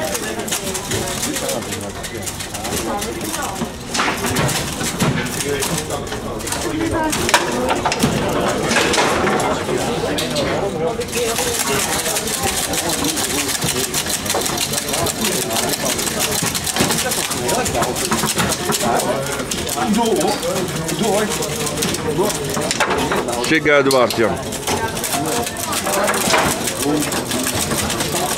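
A crowd of men murmurs and talks nearby.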